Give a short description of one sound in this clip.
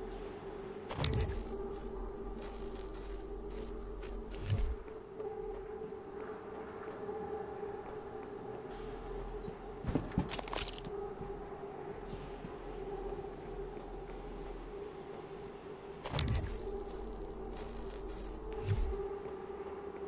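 A scope zooms in with a whirring electronic sweep.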